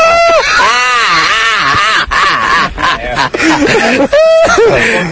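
A man laughs heartily close by.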